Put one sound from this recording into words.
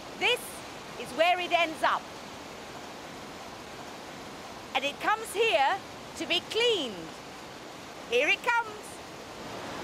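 A woman sings loudly and expressively close by.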